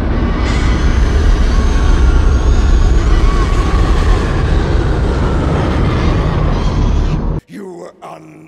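A deep, powerful engine roar rumbles loudly and steadily, then cuts off abruptly.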